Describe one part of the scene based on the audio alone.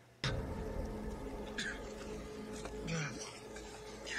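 A man grunts and groans in pain.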